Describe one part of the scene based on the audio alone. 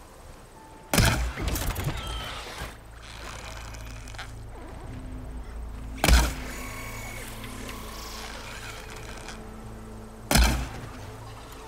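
A bowstring snaps as an arrow is loosed.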